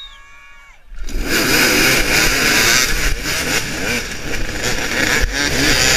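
Several dirt bike engines rev and roar loudly close by.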